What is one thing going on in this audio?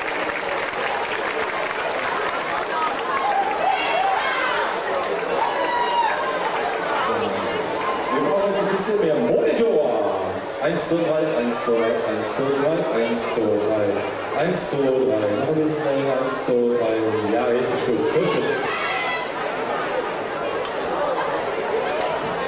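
A big band plays brass-heavy music.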